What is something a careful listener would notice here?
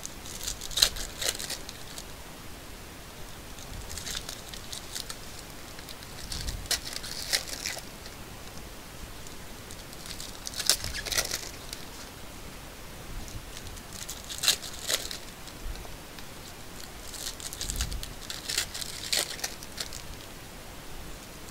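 Plastic wrappers crinkle and rustle in hands in short bursts.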